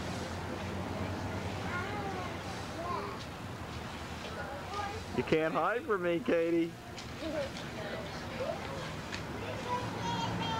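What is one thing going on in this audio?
Young children chatter and call out.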